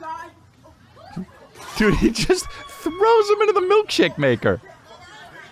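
A man laughs into a close microphone.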